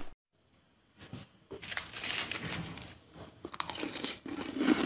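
A young woman chews and crunches shaved ice close to a microphone.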